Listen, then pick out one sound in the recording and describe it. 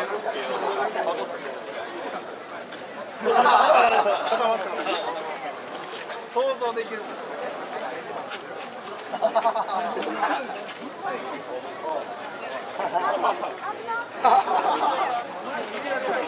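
A crowd of men and women murmurs and chatters outdoors nearby.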